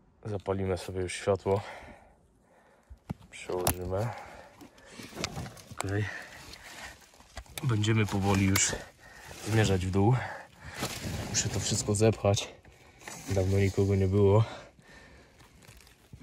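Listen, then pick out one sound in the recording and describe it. Footsteps crunch and rustle through dry leaves and twigs.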